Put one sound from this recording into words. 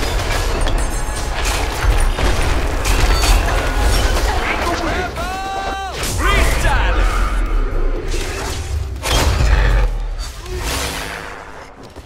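Magic blasts and impacts crackle and boom in a fast fight.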